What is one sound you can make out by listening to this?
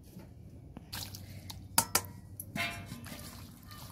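Pieces of raw meat tumble into a metal wok.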